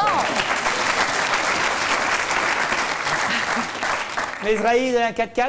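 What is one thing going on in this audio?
A studio audience applauds loudly.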